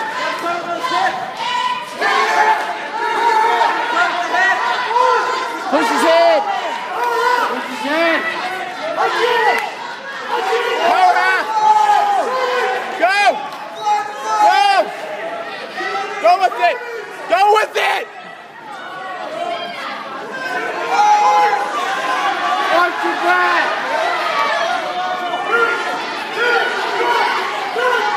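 A crowd of spectators shouts and cheers loudly in a large echoing gym.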